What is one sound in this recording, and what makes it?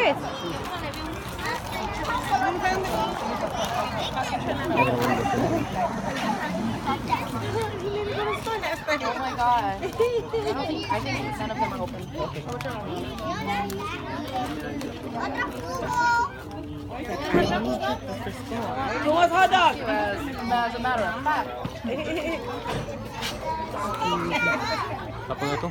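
Children and adults chatter outdoors in a lively crowd.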